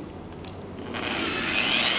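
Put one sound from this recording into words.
An electric polisher whirs against a car body.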